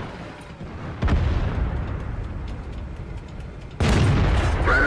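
A tank cannon fires with heavy booms.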